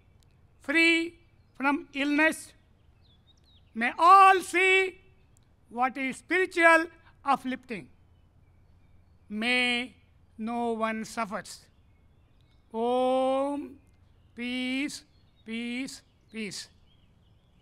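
A man speaks slowly and solemnly through a microphone.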